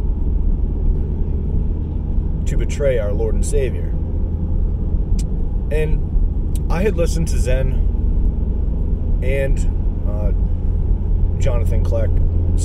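A car engine hums steadily with low road rumble.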